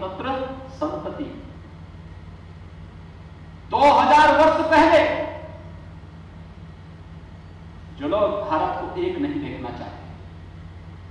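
A man speaks forcefully into a microphone over a loudspeaker, in bursts with pauses.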